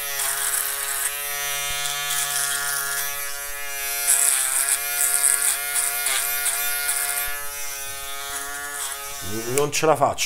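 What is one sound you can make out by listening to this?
An electric shaver buzzes steadily against stubble.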